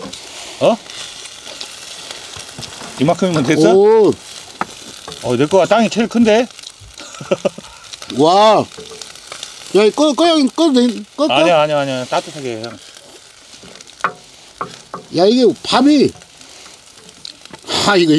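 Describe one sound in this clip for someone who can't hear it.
A wooden spatula scrapes and stirs rice in a metal pan.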